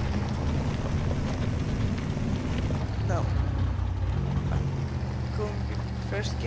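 A truck engine rumbles low and steady as it climbs.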